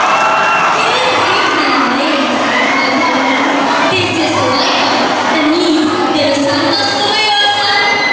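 A young woman sings into a microphone through loudspeakers in a large hall.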